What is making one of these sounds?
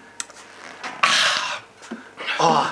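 A man groans loudly.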